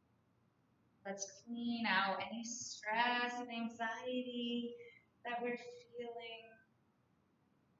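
A young woman speaks calmly and softly into a nearby microphone.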